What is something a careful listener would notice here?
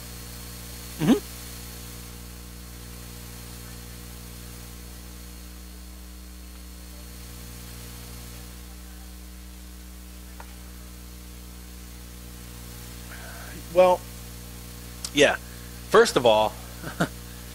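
A man speaks briefly to an audience in a large room, heard from a distance.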